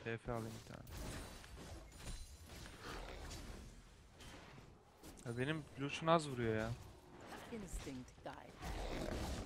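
Game sound effects clash and chime.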